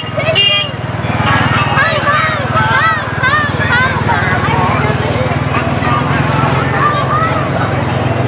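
A jeep's engine rumbles as it rolls slowly past.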